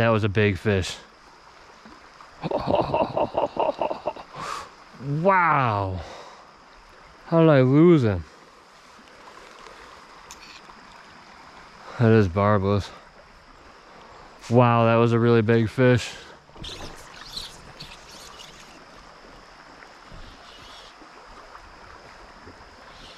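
Water ripples gently in a slow stream.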